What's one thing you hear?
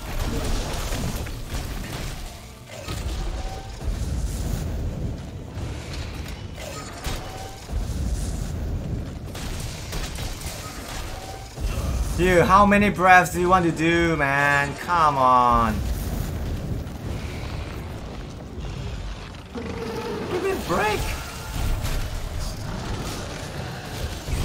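Deep rumbling and crackling of flames go on throughout.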